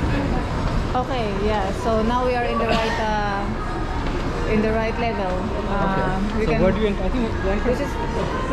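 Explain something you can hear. Men and women chatter nearby in a large echoing hall.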